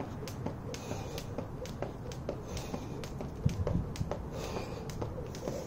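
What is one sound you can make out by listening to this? A jump rope whips and slaps the ground in a fast, steady rhythm outdoors.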